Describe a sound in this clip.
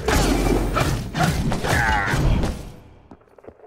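Sword slashes strike with sharp impacts.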